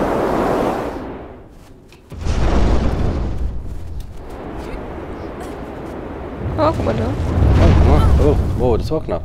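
Wind howls and gusts in a snowstorm.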